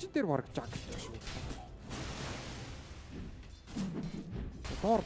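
Fantasy battle sound effects of spells and blows clash and crackle.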